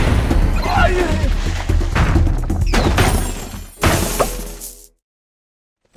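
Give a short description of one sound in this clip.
Video game battle effects clash and zap loudly.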